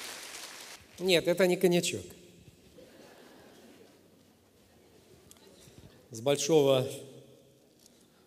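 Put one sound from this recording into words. A man speaks loudly through a microphone in a large echoing hall.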